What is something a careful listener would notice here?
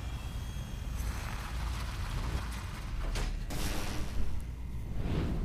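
A heavy metal blade swooshes and clangs.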